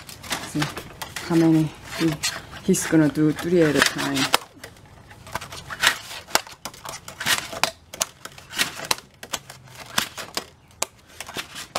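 Stiff plastic sheets rustle and tap as they are handled close by.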